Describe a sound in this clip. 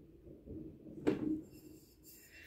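A glass bottle is set down with a knock on a hard surface.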